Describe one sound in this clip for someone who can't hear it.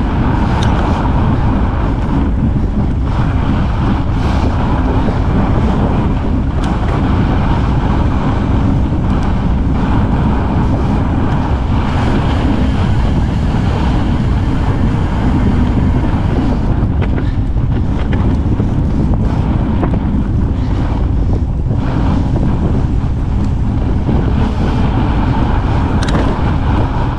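Bike tyres crunch over packed snow.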